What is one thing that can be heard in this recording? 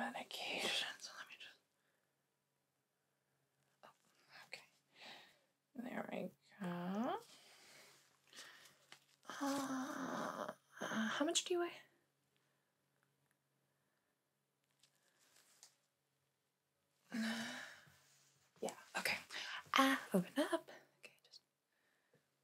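Rubber gloves rustle and squeak.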